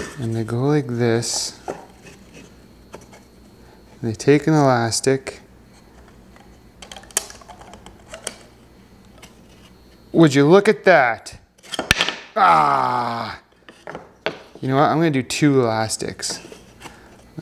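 Small wooden pieces knock and clack together on a wooden surface.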